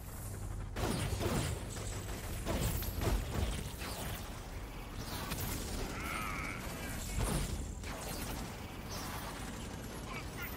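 Energy blasts crackle and explode loudly.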